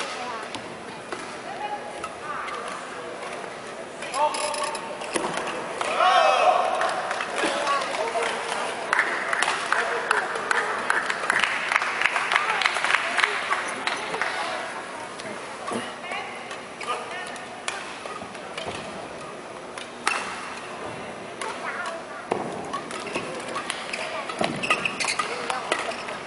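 Shuttlecocks are struck sharply with rackets in quick rallies.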